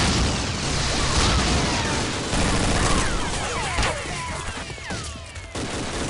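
Energy weapons whine and zap with sliding tones.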